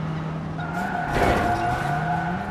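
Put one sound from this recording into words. A car crashes with a loud bang.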